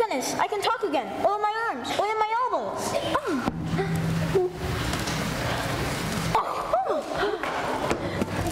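A young girl speaks in a lively, sing-song voice.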